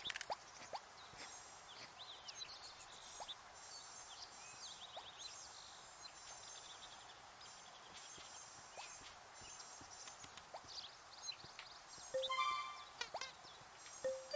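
Small creatures chirp and coo in high little calls.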